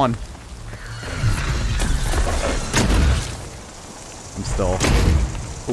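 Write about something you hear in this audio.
A gun fires single shots.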